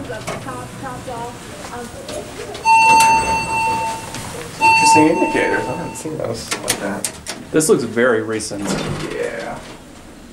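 Elevator doors slide open and shut.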